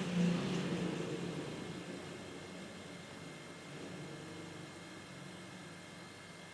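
An air compressor motor hums and slowly winds down.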